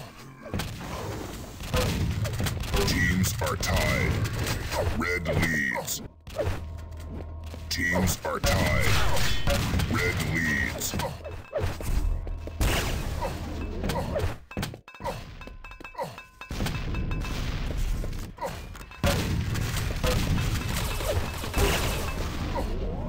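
Footsteps patter quickly from a game character running.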